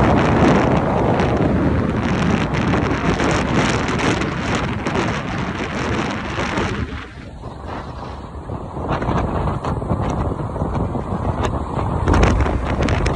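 Wind rushes past a microphone on a moving motorcycle.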